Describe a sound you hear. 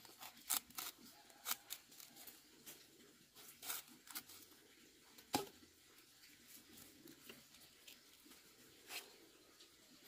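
A machete chops into a thick plant stalk with sharp, repeated thuds.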